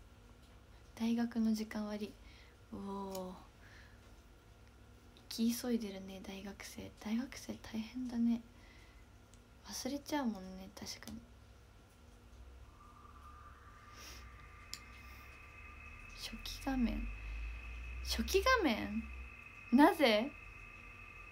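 A young woman speaks softly and casually, close to the microphone, in short bursts.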